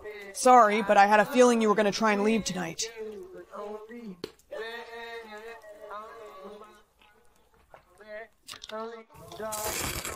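A young woman sings close to a microphone.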